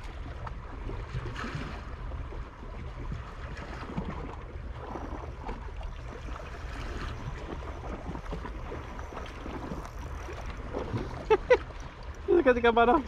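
Gentle waves lap against rocks.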